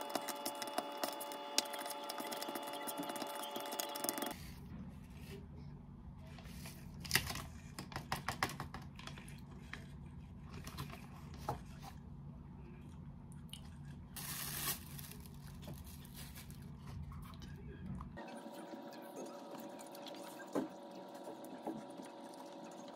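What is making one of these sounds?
A plastic spoon scrapes and stirs food in a paper cup.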